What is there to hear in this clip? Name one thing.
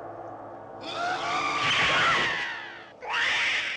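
A man shouts fiercely.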